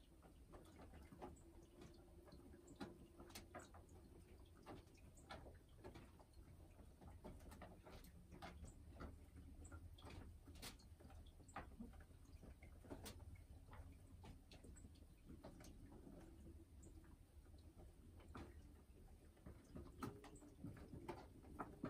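A hen clucks softly and low, close by.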